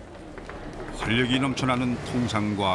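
Men and women chatter in a large echoing hall.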